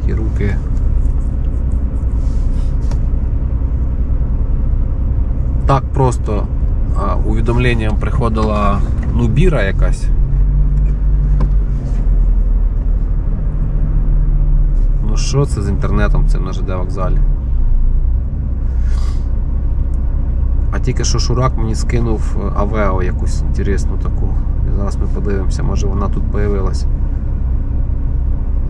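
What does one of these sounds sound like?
A car engine idles with a low steady hum.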